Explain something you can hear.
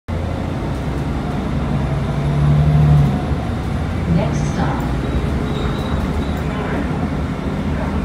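The bus rattles and creaks as it moves.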